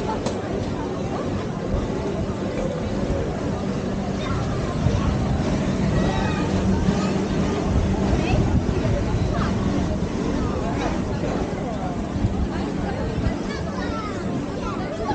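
A crowd of adults and children chatter outdoors.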